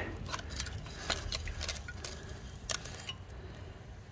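A heavy metal cover clanks as it is lifted off.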